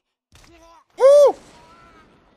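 A man exclaims loudly in surprise.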